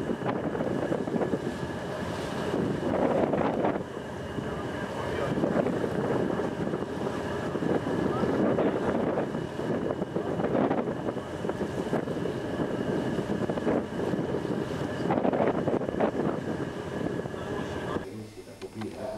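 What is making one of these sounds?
Waves ripple and wash across open water.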